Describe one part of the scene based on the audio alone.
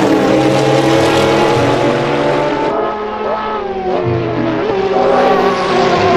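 Racing car engines roar loudly at high revs.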